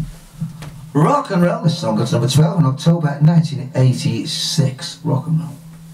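A man plays a harmonica, loud and close.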